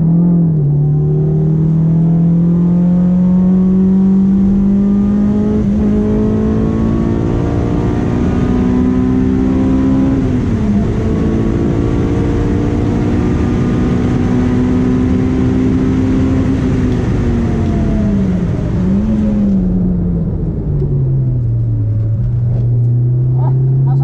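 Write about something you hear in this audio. A car engine roars loudly close by, rising and dipping in pitch.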